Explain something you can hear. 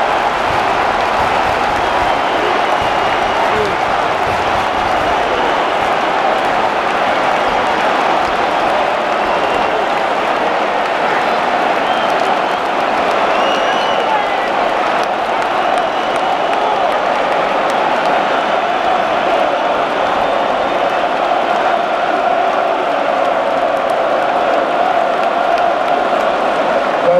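A large stadium crowd roars and chants steadily all around, echoing under the roof.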